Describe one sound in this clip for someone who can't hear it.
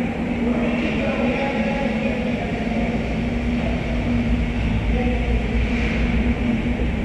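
Skates scrape faintly on ice in a large echoing hall.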